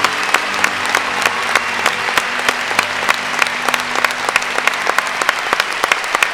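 An orchestra plays folk music in a large hall.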